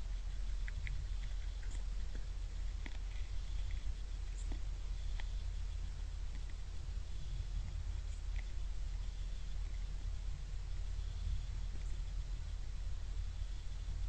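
Wind rumbles steadily against the microphone.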